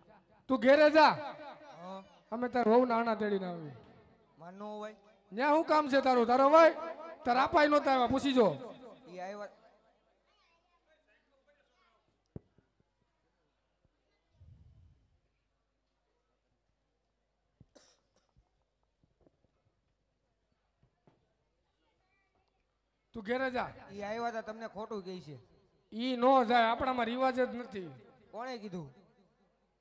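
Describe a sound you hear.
A man sings loudly into a microphone, heard through loudspeakers.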